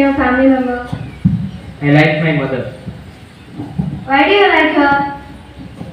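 A young man answers into a microphone, heard through a loudspeaker.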